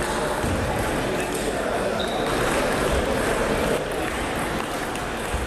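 A table tennis ball clicks back and forth between paddles and the table in an echoing hall.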